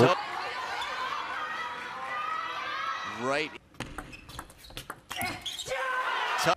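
A large crowd cheers and shouts loudly in a big hall.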